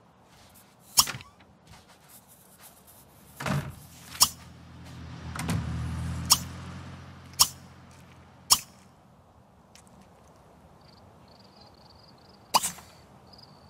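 Short sharp clicks sound now and then as menu options are picked.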